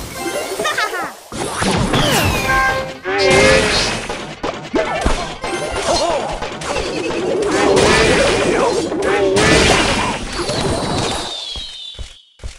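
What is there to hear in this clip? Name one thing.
Video game battle effects clash, thud and zap.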